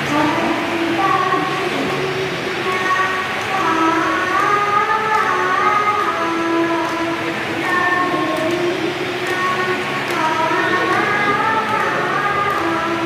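A young girl sings through a microphone and portable loudspeaker.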